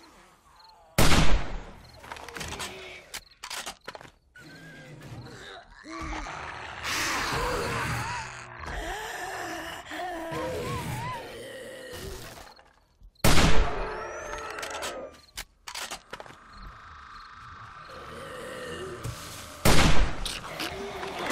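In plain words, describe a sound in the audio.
A gun fires loud shots that ring out.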